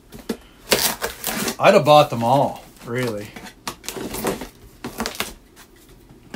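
A utility knife slices through packing tape.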